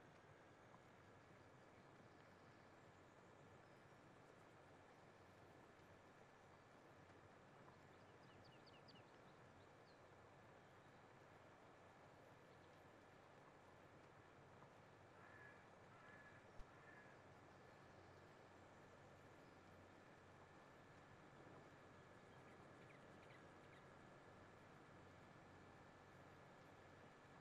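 A cultivator rattles over soil.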